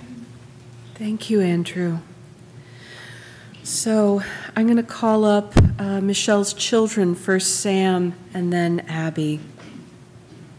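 A woman chants through a microphone in an echoing hall.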